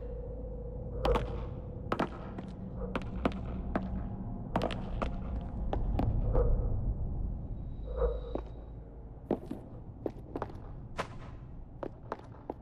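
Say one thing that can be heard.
Footsteps tap and thud on wooden stairs and floors.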